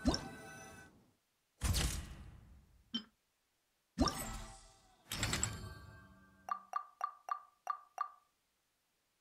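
Game menu chimes and whooshes sound in quick bursts, then fall silent.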